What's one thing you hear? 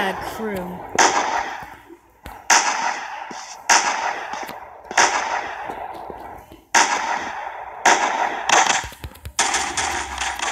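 Loud gunshots ring out one at a time, each with a long echoing tail.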